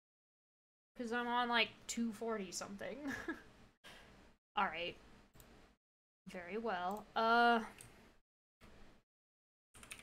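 A young woman talks animatedly into a microphone.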